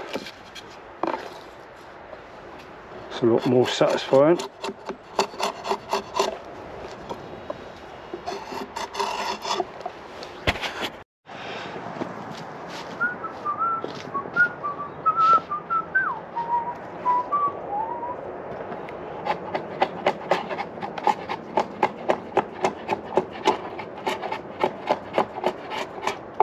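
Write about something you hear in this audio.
A drawknife shaves wood in quick rasping strokes.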